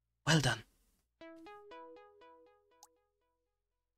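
A short chiming jingle plays.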